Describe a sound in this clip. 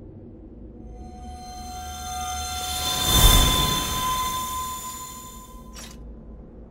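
A shimmering magical whoosh swells to a bright burst and fades.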